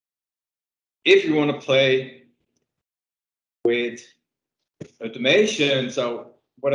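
A young man talks with animation into a microphone close by.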